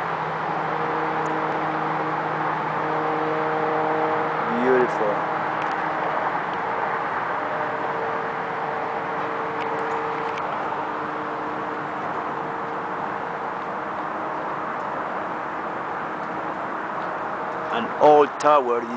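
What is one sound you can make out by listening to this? Wind blows steadily outdoors, rustling trees.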